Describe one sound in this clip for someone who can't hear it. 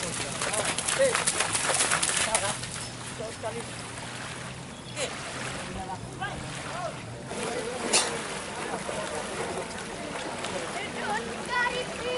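A horse splashes through shallow water.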